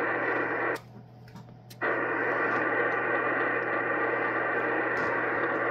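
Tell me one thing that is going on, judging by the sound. A radio receiver hisses with loud, steady static through its loudspeaker, cutting out for about a second near the start.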